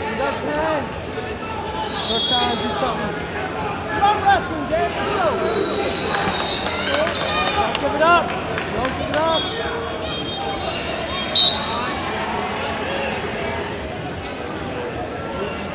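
Many spectators talk and call out in a large echoing hall.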